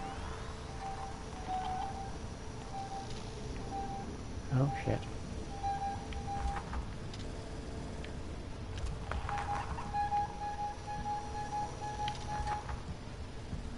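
A handheld tracker beeps in quick repeated pulses.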